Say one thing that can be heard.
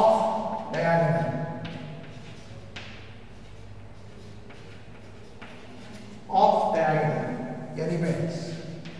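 A man speaks calmly into a microphone, lecturing.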